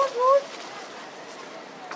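Shoes scuff and tap on a concrete path.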